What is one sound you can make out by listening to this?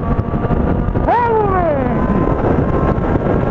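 A motorcycle engine's pitch sweeps down sharply as the gear changes.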